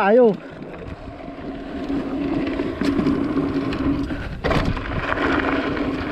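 Bicycle tyres thump over wooden boards.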